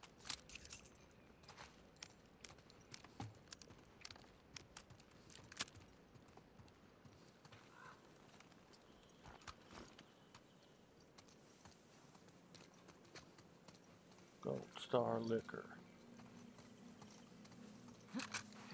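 Footsteps tread on a hard floor and wet pavement.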